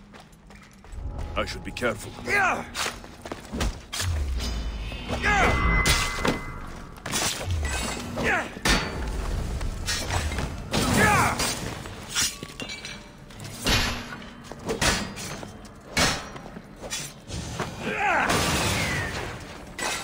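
Blades clash and strike in a sudden fight.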